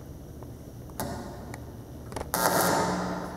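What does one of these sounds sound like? A young woman speaks into a microphone in a large echoing hall.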